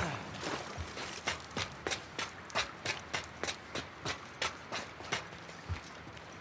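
Footsteps clank steadily on metal stairs.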